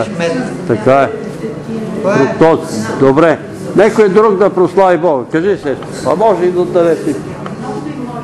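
An elderly man speaks with animation in an echoing hall.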